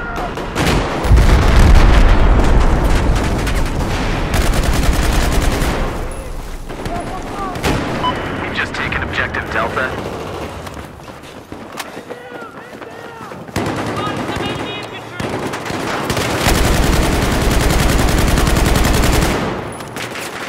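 Rifle fire rattles in rapid bursts.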